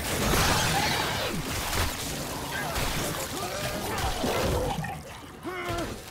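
Flesh splatters and tears under heavy blows.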